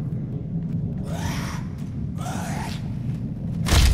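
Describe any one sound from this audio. A monster growls and snarls.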